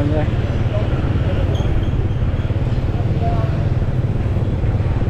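Motorbike engines hum as they ride along a street.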